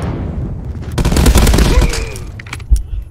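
Assault rifle gunfire bursts in a video game.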